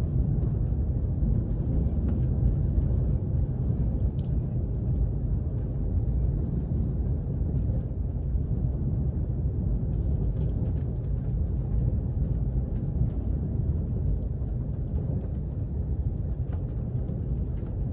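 Train wheels click and rattle on the rails.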